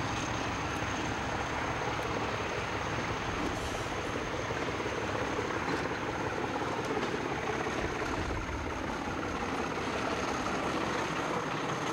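An Alco diesel locomotive rumbles past under load.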